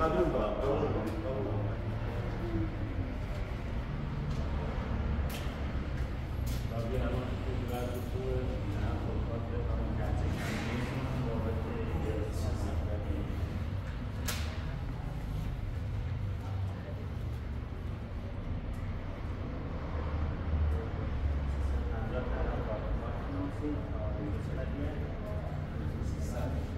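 Several men talk calmly nearby.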